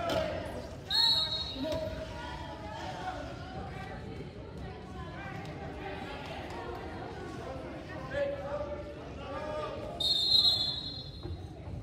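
A referee's whistle blows sharply in a large echoing gym.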